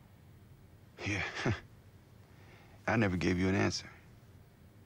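A young man speaks quietly in reply.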